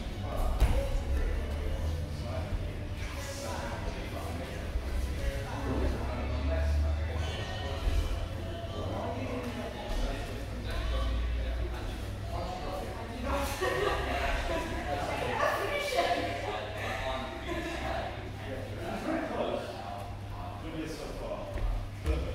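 Bodies shift and thump softly on a padded mat.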